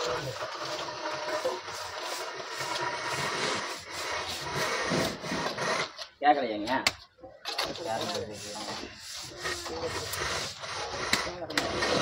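A broom sweeps scratchily across a rough floor.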